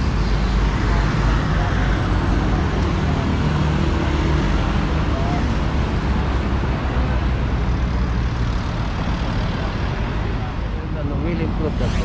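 Traffic rumbles steadily on a nearby road.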